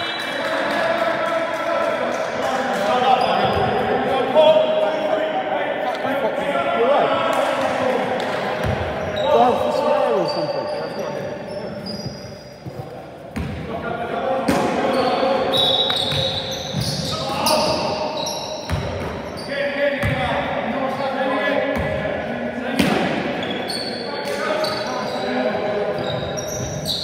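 Men shout to one another across a large echoing hall.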